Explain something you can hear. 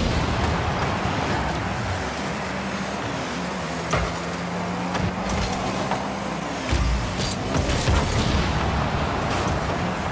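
Game explosions boom during demolitions.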